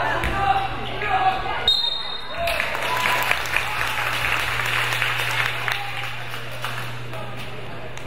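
Young boys shout and call out across the court.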